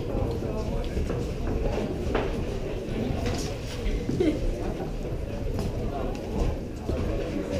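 A crowd of young men and women chatter nearby.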